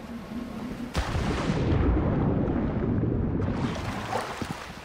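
Water rushes and bubbles, heard muffled from underwater.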